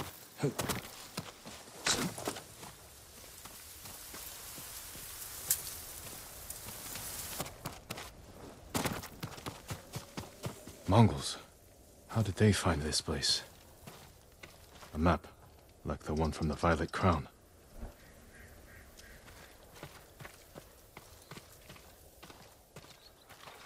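Footsteps tread on stone and grass.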